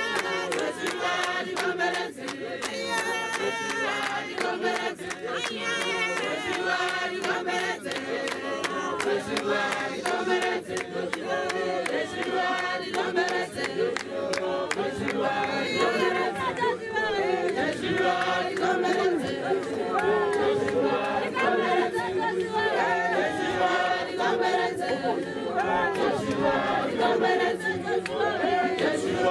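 A large crowd of men and women sings together outdoors.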